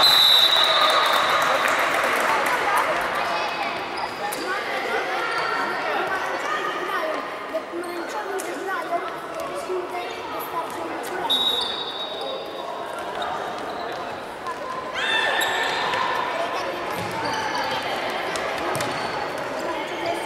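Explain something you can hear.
A ball thuds on a wooden floor.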